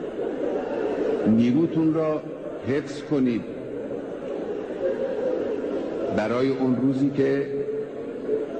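A large crowd of men chants loudly in unison.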